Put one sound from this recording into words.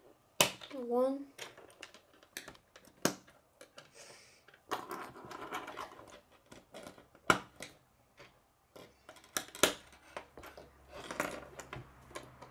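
Plastic construction pieces click and snap together.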